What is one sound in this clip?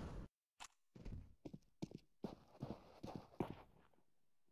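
Footsteps walk on stone.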